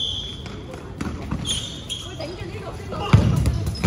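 Balls thud as they are thrown and hit players.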